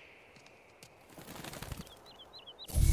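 A rush of air sweeps past during a long leap.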